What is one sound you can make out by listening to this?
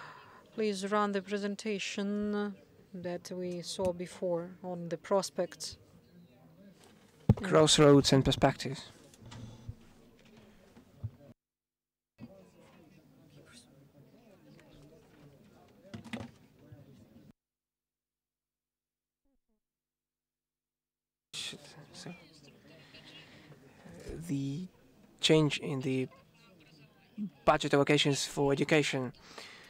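An older woman speaks calmly into a microphone, heard through loudspeakers in a large hall.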